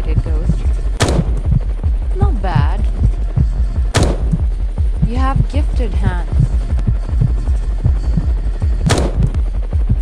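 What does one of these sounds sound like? A sniper rifle fires sharp single shots.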